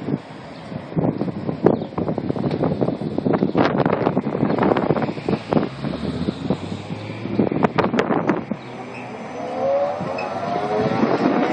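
An electric bus rolls up close, its motor whining upward.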